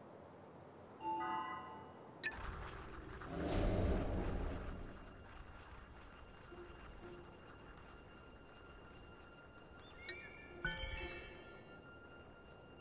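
A soft electronic chime sounds now and then.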